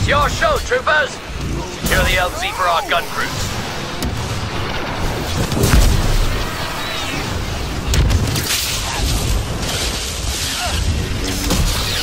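A lightsaber hums and swings.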